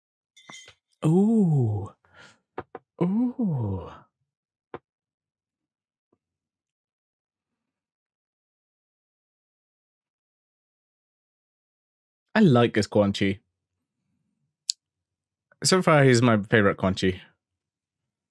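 A young man speaks with animation into a close microphone, in short bursts with pauses.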